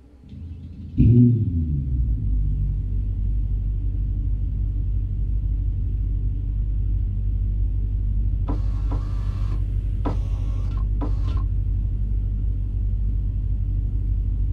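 A car engine starts with a roar and settles into a deep, steady idle.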